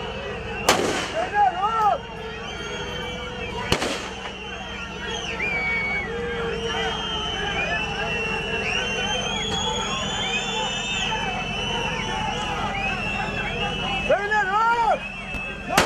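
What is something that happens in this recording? A crowd of men shouts and chants outdoors.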